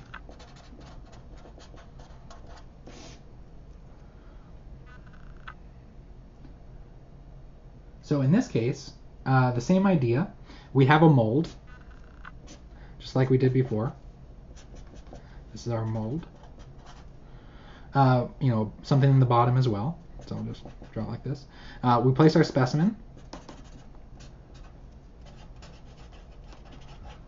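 A marker pen squeaks and scratches on paper.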